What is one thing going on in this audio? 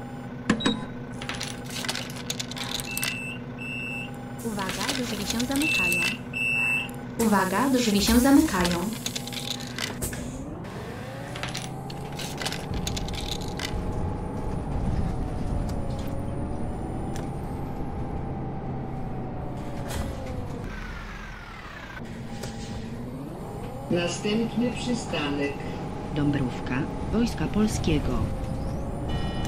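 A bus engine idles, then revs up and drones as the bus drives along.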